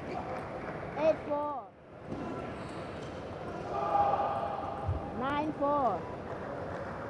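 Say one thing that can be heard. A man shouts out loudly after winning a point.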